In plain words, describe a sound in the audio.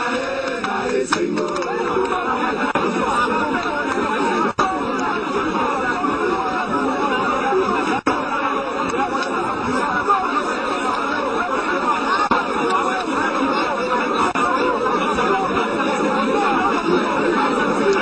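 A crowd of men sing and chant loudly outdoors.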